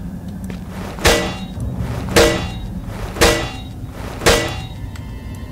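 A metal crowbar bangs sharply against a metal cabinet several times.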